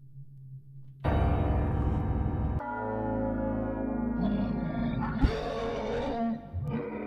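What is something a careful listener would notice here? Loud, dramatic music suddenly starts and plays on.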